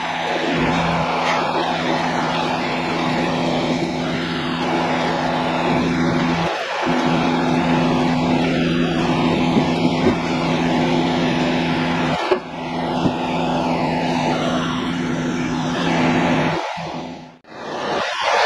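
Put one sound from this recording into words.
A large diesel engine idles with a steady low rumble nearby.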